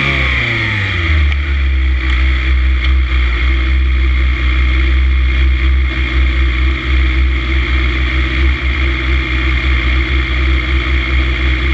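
A motorcycle engine idles with a loud, steady throb close by.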